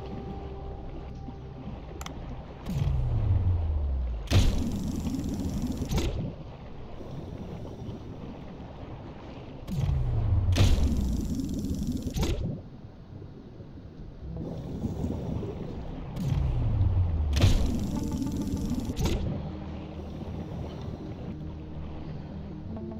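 Muffled underwater ambience hums steadily.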